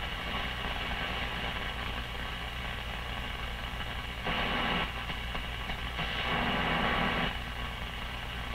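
An old radio hums steadily.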